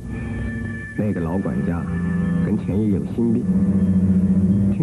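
An elderly man speaks slowly in a low voice.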